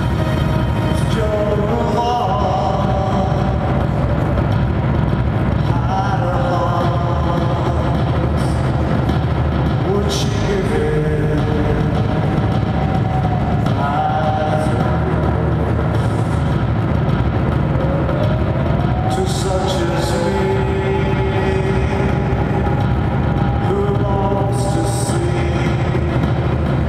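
An electric guitar plays loud and distorted.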